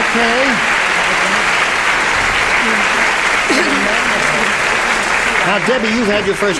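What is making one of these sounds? An audience laughs and applauds loudly in a large hall.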